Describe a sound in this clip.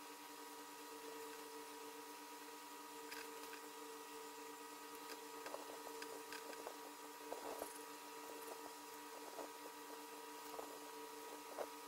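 A pen scratches and taps lightly on paper.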